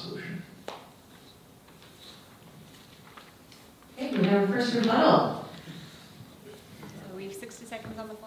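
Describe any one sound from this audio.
A woman speaks calmly into a microphone over loudspeakers in a large room.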